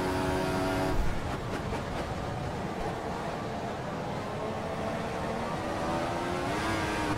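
A racing car engine drops in pitch as the car brakes hard, then revs up again.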